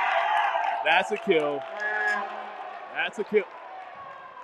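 Young men shout across a large echoing gym.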